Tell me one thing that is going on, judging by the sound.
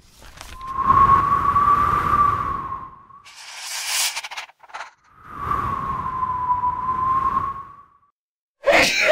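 Wind whistles in gusts.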